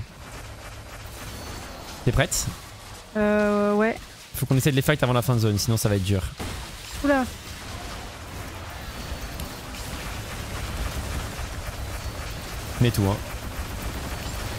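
Fast magical blasts and whooshes from a video game crackle in the background.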